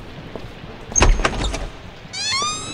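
A door latch clicks and the door swings open.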